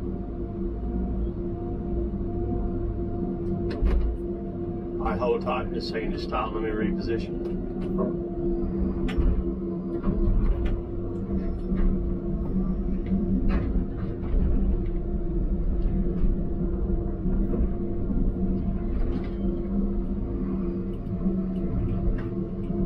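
A heavy diesel engine hums steadily close by from inside a cab.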